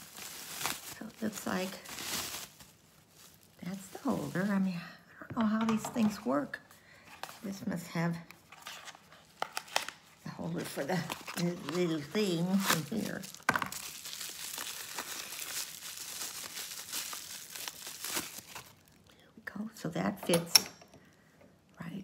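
An older woman talks calmly, close by.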